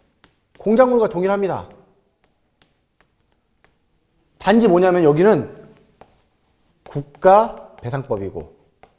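A man speaks calmly and clearly into a close microphone, in short phrases.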